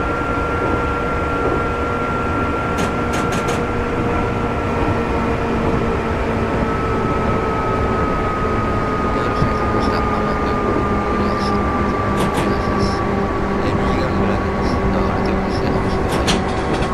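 Train wheels rumble steadily on the rails.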